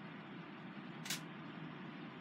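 A plastic makeup compact clicks once.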